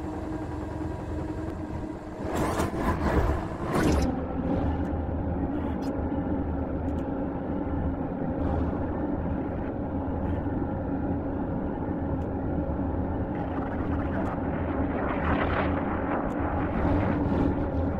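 A spacecraft engine hums steadily.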